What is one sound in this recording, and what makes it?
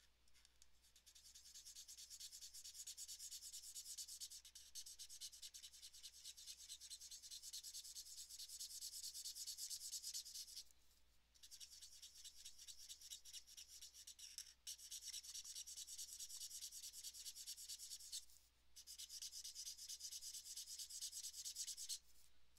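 A felt-tip marker scratches back and forth on paper in quick strokes.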